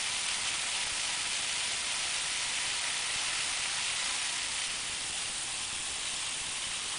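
A pressure washer nozzle sprays a hard, steady hiss of water onto concrete.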